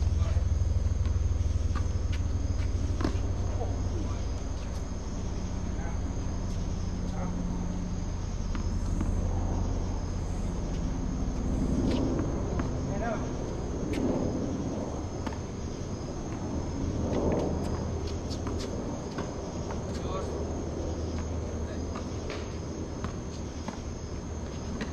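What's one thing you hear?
Footsteps scuff and squeak on a hard court.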